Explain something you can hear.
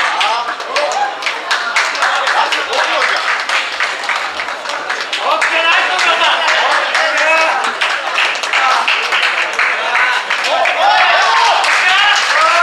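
A crowd of men and women cheers and shouts loudly nearby.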